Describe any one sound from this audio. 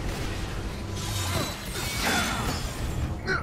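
An energy blast bursts with a whoosh.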